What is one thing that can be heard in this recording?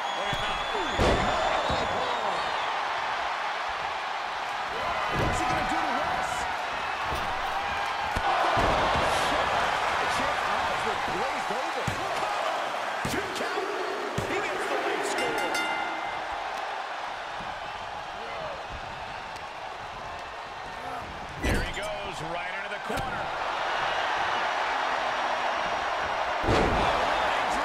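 Wrestlers' bodies slam heavily onto a ring mat.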